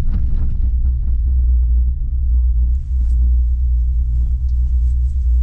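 Wind rumbles steadily against the microphone.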